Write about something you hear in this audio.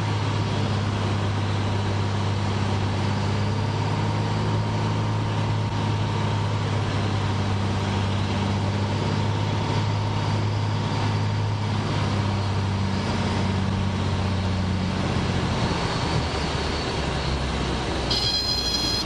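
A small propeller plane's engine drones loudly and steadily from close by, then eases off near the end.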